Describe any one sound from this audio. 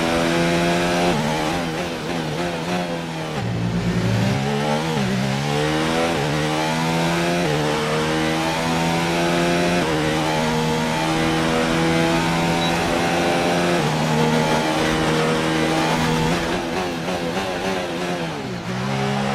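A racing car engine roars loudly, its pitch climbing through the gears and dropping sharply under braking.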